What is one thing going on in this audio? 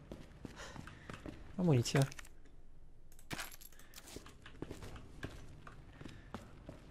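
Footsteps thud at a steady walking pace on a hard floor.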